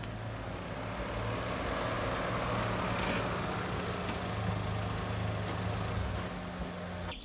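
A car engine hums as a car pulls up close by and stops.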